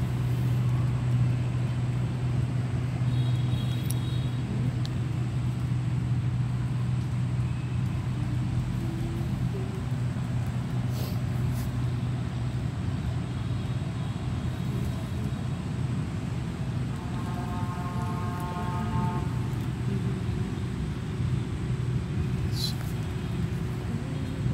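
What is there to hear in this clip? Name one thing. Motorbikes pass by on a nearby street.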